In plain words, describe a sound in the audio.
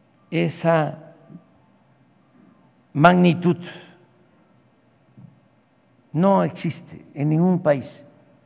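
An elderly man speaks slowly and deliberately into a microphone, in short phrases with pauses.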